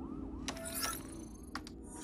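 A person types on a computer keyboard.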